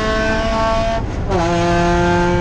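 A racing car engine briefly cuts out during a quick gear change, then roars again.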